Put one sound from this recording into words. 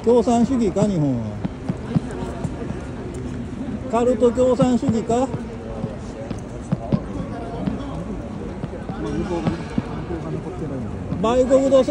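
A crowd of people murmurs and chatters outdoors.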